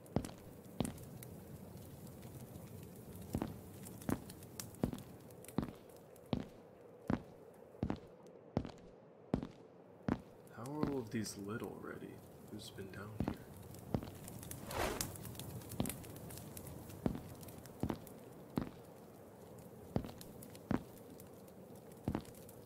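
A torch fire crackles softly.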